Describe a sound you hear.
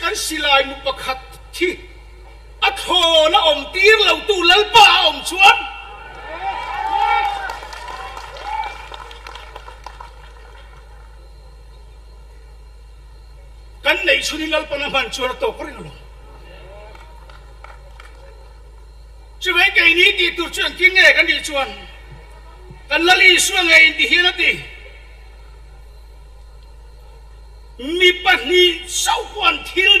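A middle-aged man speaks forcefully into a microphone through loudspeakers, in bursts with long pauses.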